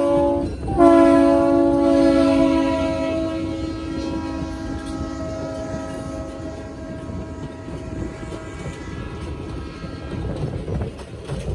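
A locomotive horn blares loudly and slowly fades.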